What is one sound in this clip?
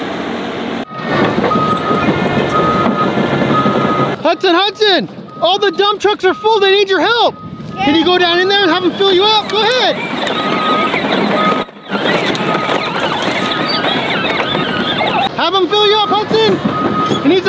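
A toy electric tractor whines as it drives over rough ground.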